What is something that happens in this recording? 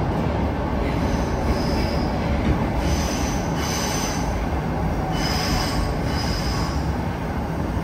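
Metal squeals and screeches under a moving train.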